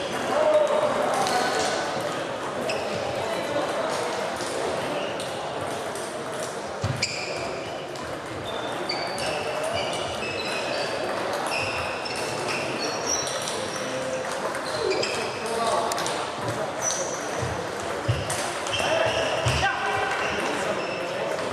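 Sports shoes squeak on a hall floor.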